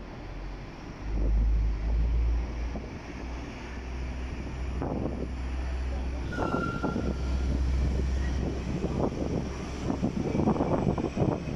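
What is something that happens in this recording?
A train slowly pulls away with a low, deepening rumble.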